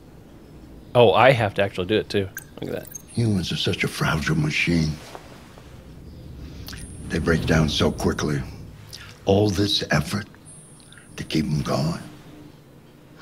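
An elderly man speaks slowly and softly.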